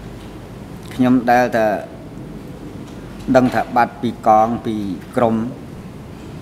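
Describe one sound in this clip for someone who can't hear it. An elderly man speaks slowly into a microphone.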